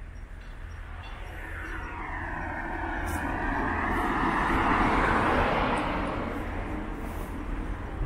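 A car approaches and drives past close by.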